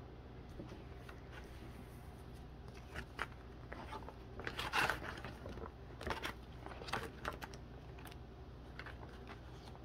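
Plastic card sleeves rustle and crinkle as cards are handled.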